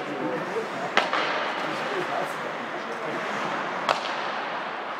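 A hockey stick strikes a puck with a sharp crack.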